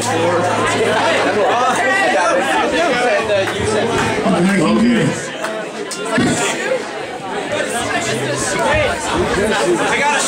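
Electric guitars play loudly through amplifiers.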